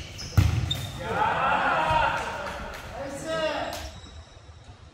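A young man shouts to other players.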